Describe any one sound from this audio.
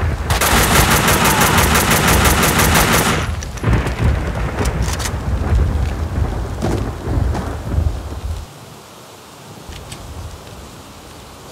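Rain patters steadily.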